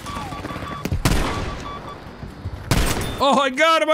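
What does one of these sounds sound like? A shotgun fires loudly with a sharp blast.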